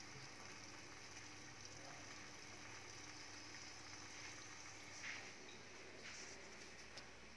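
Food sizzles softly in a covered pan.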